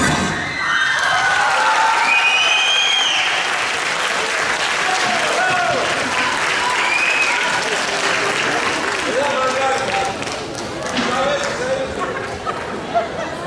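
Dancers' feet stamp on a wooden stage.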